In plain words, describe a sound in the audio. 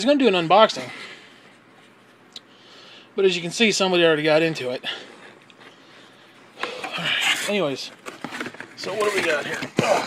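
A cardboard box flap rustles and scrapes under a hand.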